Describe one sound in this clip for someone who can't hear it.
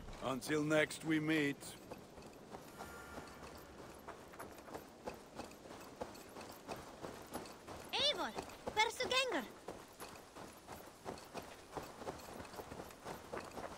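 Footsteps crunch steadily on a dirt path.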